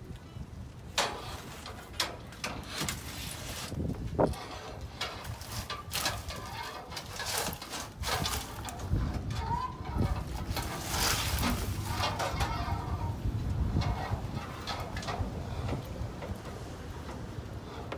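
Trash tumbles into a plastic bin with rustling and thuds.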